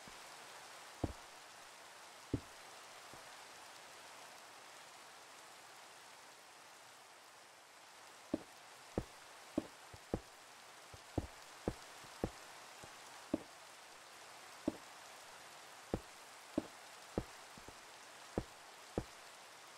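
Blocks are placed with short, dull thuds.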